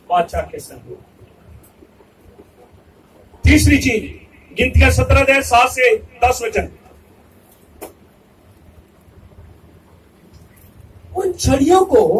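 A man speaks with animation through a microphone and loudspeakers, in bursts with pauses.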